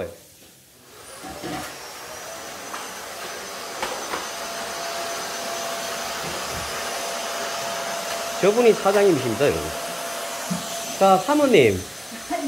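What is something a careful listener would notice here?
A vacuum cleaner hums steadily nearby.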